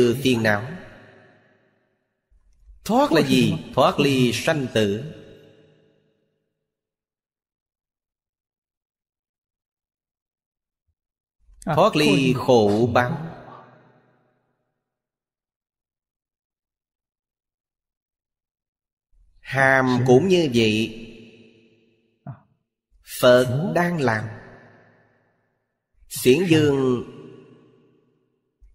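An elderly man speaks calmly into a close microphone, in short phrases with long pauses.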